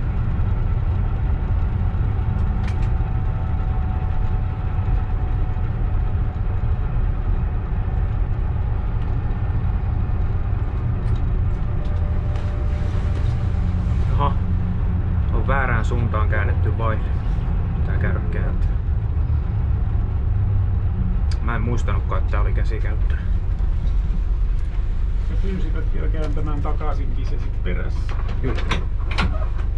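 A train engine rumbles steadily as the train rolls along the track.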